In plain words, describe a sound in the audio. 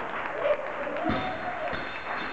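A loaded barbell drops onto the floor with a heavy thud.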